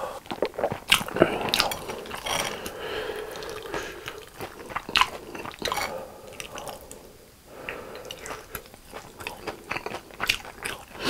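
A crunchy coating crackles close by.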